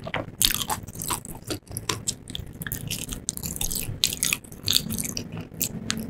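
A woman's fingers tear crispy fried chicken apart close to a microphone.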